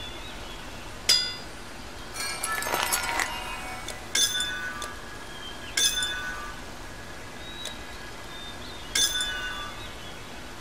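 Metal gear clanks and rattles in short bursts as equipment is swapped.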